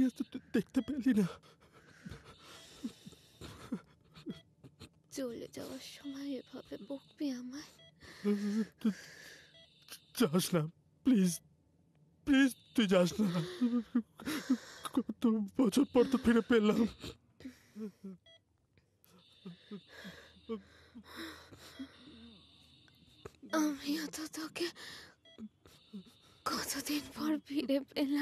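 A young man speaks softly and with emotion, close by.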